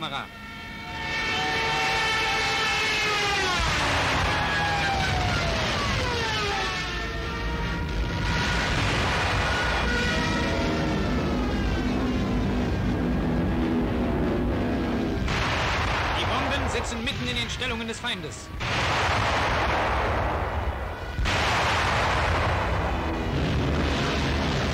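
A Ju 87 Stuka dive bomber dives with its propeller engine roaring.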